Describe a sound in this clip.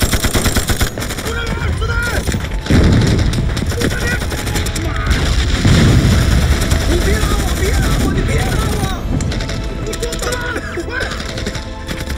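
A young man shouts in distress.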